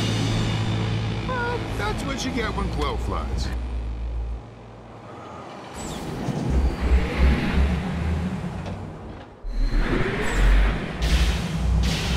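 A roller coaster car rumbles and rattles along its track.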